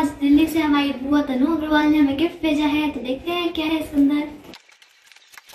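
A girl speaks brightly and close by.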